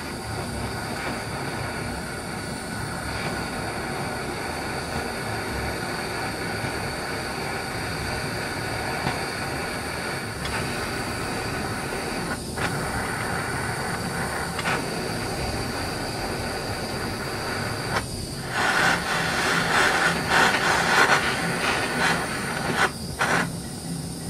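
A gas torch roars steadily.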